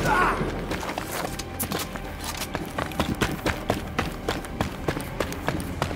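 Footsteps thud steadily on pavement.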